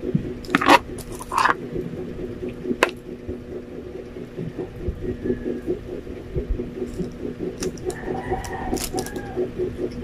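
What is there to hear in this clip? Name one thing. Crisp food crunches as a young man bites into it.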